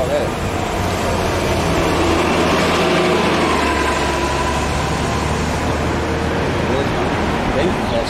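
A bus rumbles past up close.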